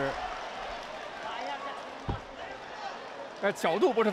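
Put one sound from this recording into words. A crowd murmurs and cheers in a large hall.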